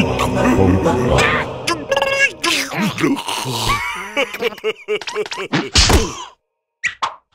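A cartoon creature babbles and shouts in a squeaky voice.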